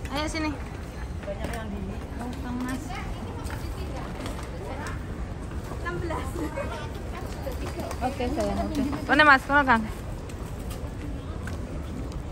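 Suitcase wheels roll across a hard floor.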